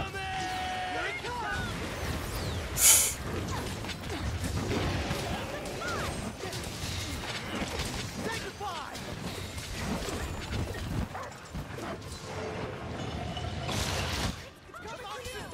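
Swords clash and strike a large beast in quick bursts.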